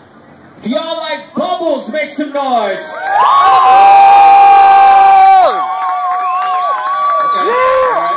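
A young man talks loudly through a microphone and loudspeaker.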